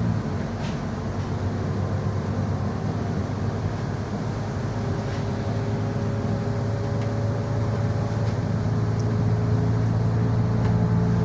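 Windscreen wipers swish back and forth.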